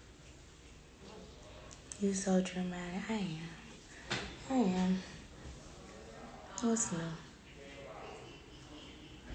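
A young woman speaks casually and close up, heard through a phone microphone.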